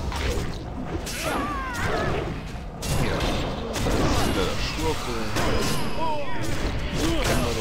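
Weapons clash and strike in quick blows.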